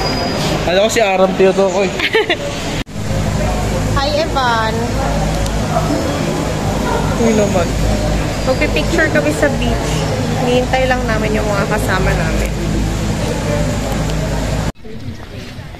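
A young woman talks close up.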